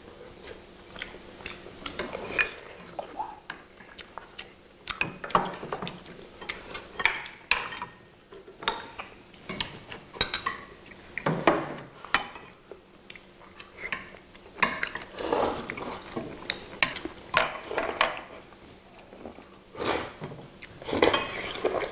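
Chopsticks and spoons clink against ceramic bowls.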